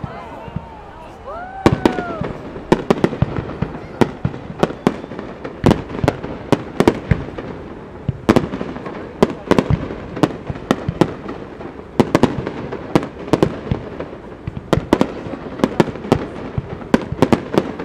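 Fireworks burst with loud booms and crackles outdoors.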